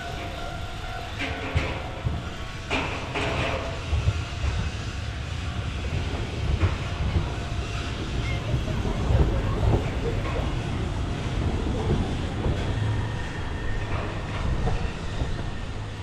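A tram rumbles past close by on its rails, then fades away.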